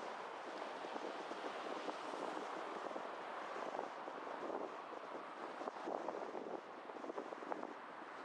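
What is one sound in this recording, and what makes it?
A car drives along a road with a steady hum of tyres and engine.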